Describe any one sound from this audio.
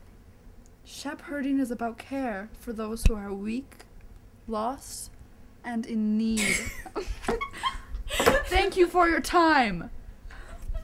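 A young woman talks close by, animated and playful.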